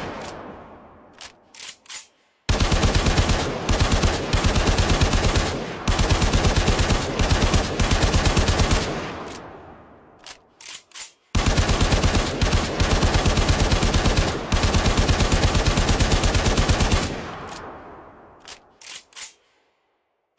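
A gun fires in rapid bursts, with the shots echoing and fading.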